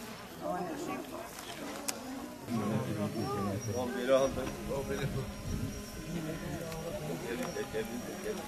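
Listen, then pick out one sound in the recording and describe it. A crowd of men murmurs and talks nearby, outdoors.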